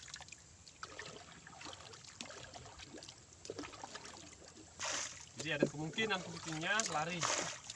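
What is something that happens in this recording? A paddle splashes in water.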